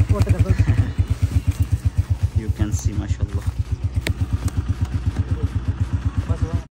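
A motorcycle engine idles with a steady rapid putter.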